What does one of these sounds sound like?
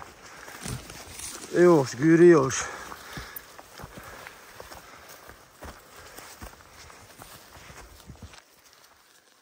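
Footsteps crunch on a dry, leafy forest path.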